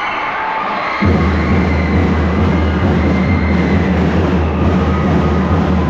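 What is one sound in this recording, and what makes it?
Loud dance music with a thumping beat plays over loudspeakers.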